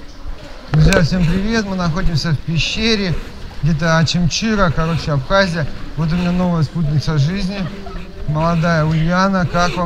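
Water splashes as feet wade through a stream.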